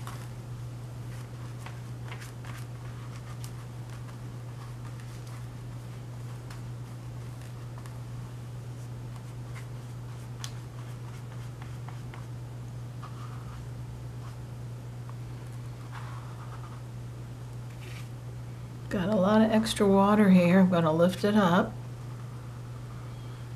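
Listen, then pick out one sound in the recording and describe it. A brush strokes softly across wet paper.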